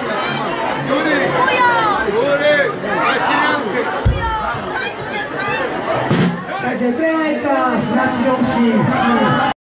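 A middle-aged man sings loudly into a microphone through loudspeakers.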